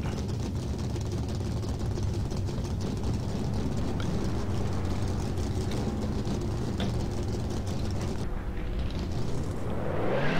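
A race car engine idles with a low, steady rumble.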